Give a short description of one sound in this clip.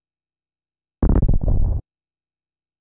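A huge creature lets out a deep, rumbling roar.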